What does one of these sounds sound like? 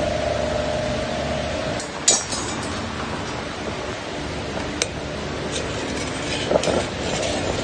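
Metal tongs clink against the side of a pot.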